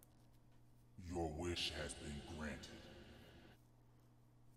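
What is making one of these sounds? A deep creature growls.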